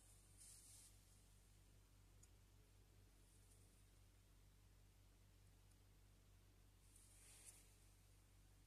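Small plastic parts click softly as they are fitted together.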